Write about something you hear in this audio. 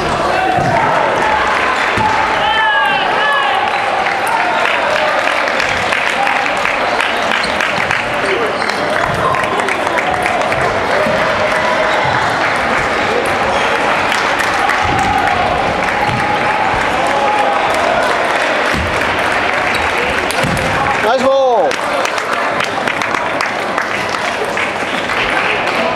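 Table tennis balls click back and forth on paddles and tables.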